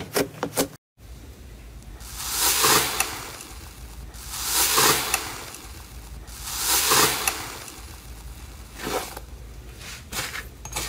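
A fingertip pushes into a crust of slime with a crisp crunching.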